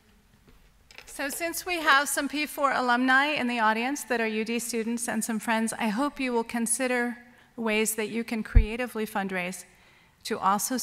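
A woman speaks into a microphone, heard through loudspeakers in a large hall.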